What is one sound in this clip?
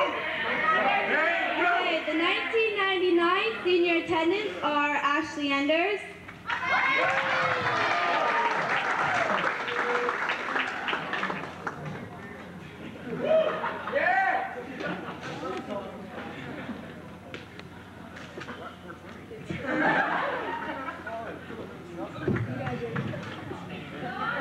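A crowd of young men and women chatters and laughs nearby.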